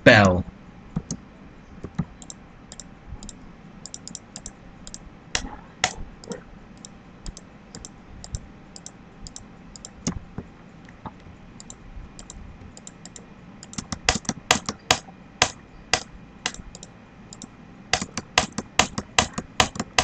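Game blocks are placed with quick, soft clicks.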